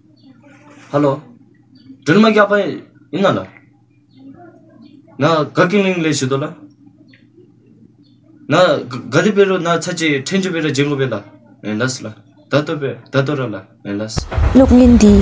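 A young man talks calmly on a phone close by.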